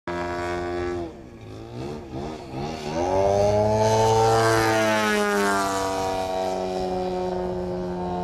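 A small propeller plane drones overhead, its engine pitch rising and falling as it turns.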